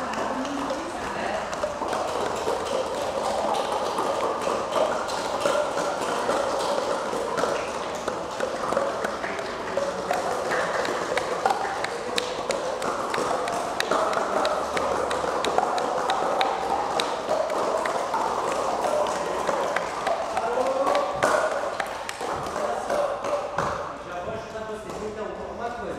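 A man talks with animation, close by, in an echoing room.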